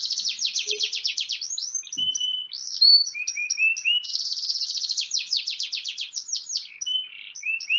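A canary sings a fast, trilling song with rapid chirps and whistles.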